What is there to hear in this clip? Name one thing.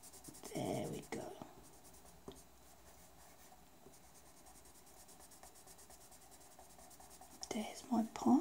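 A pencil scratches softly on paper in quick strokes.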